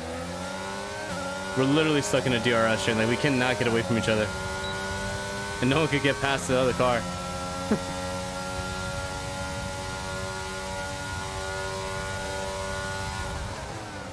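A racing car engine whines steadily at high revs.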